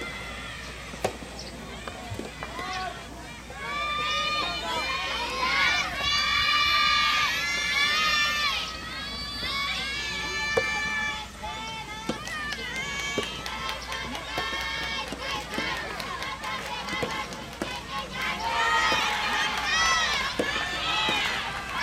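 Tennis balls are struck with sharp pops, now and then.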